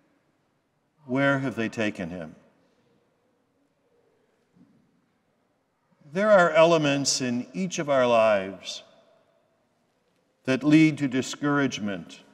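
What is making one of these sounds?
An elderly man speaks slowly and solemnly into a microphone in a large echoing hall.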